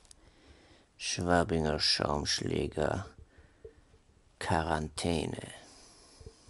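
A man speaks groggily and close by, as if just woken.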